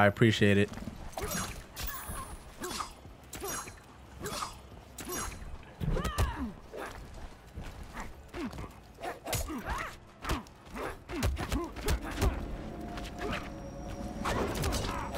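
Blows and impacts thud and crack in a fight.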